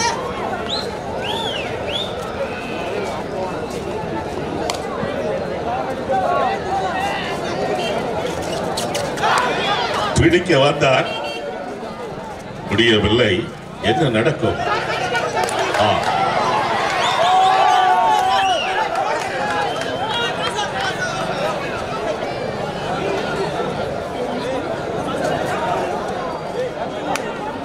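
A large crowd cheers and chatters loudly throughout.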